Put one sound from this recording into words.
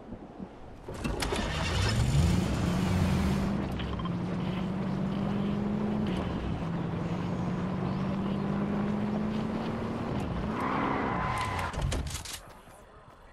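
A car engine hums steadily and revs as the car speeds along a road.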